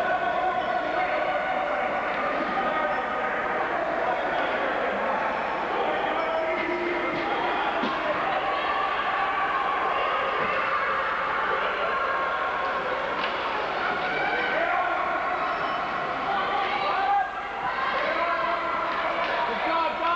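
Ice skates scrape across ice in a large echoing hall.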